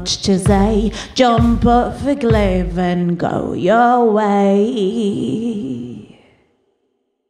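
A young woman sings close into a microphone.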